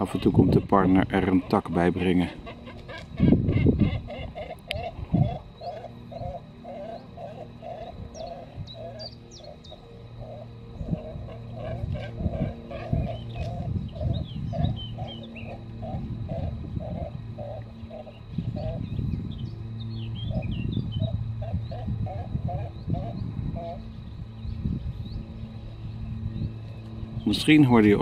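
A cormorant chick calls with rapid, repeated croaking begs from a nest.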